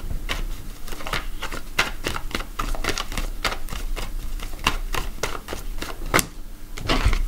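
Playing cards are shuffled and flicked with quick crisp snaps.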